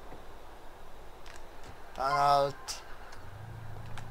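A car door shuts with a thud.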